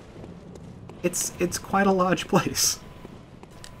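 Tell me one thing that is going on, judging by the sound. A young woman speaks into a microphone, close and with animation.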